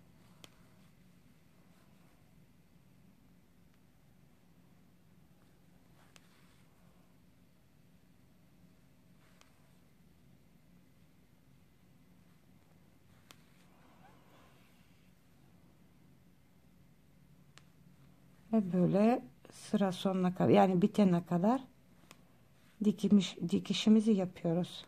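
A crochet hook pulls yarn through stitches with a soft rustle.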